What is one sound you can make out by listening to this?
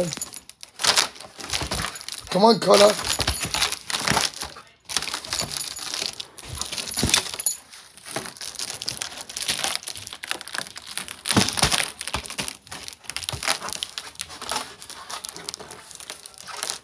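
A dog's teeth snap and click against a balloon.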